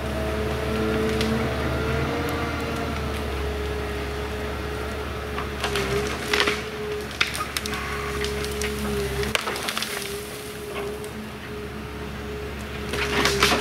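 A heavy machine engine hums steadily.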